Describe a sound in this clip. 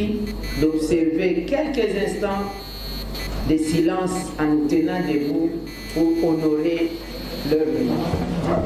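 A woman speaks steadily into a microphone, heard over a loudspeaker.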